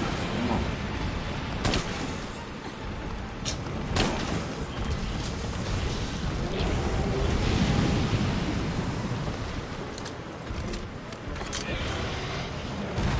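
Fire roars and crackles around a huge beast.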